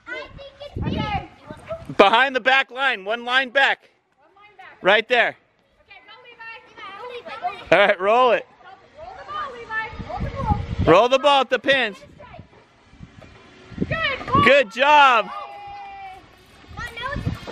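A young child shouts and squeals.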